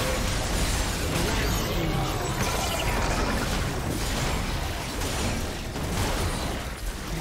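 Game spells burst and crackle in a fast fight.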